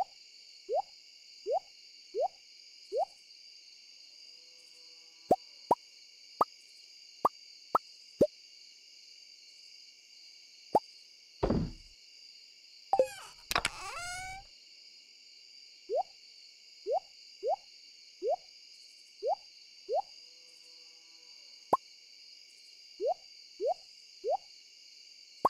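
Short game blips sound again and again.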